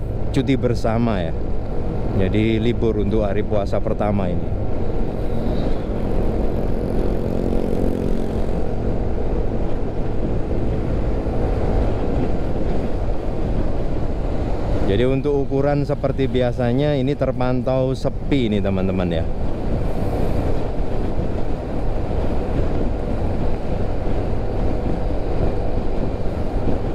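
Road and wind noise rumbles steadily from a moving vehicle.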